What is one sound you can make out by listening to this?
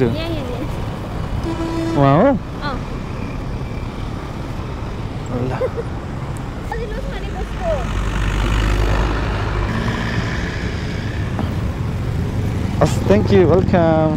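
Traffic rumbles past on a busy road outdoors.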